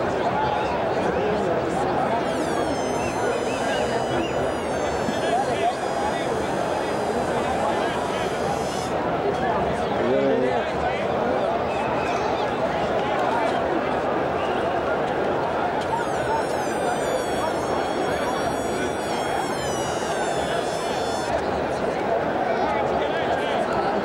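Nearby young men talk casually close by.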